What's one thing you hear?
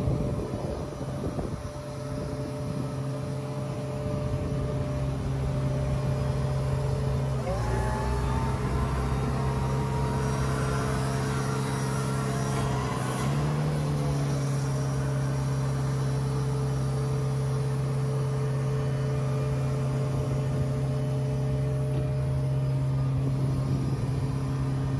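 A diesel engine idles steadily with a low hum.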